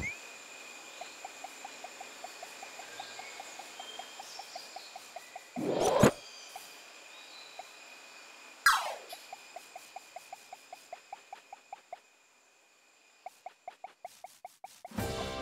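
Quick, light footstep effects patter in a video game.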